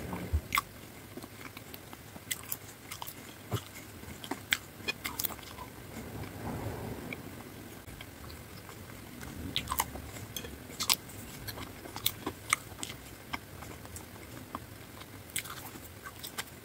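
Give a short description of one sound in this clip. A woman chews food wetly and crunchily close to a microphone.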